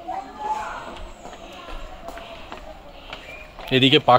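Footsteps tap on a paved path.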